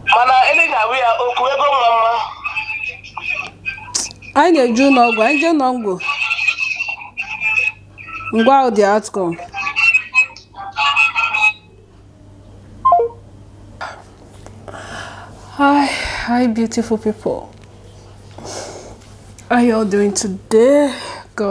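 A woman speaks with emotion close by, pausing now and then.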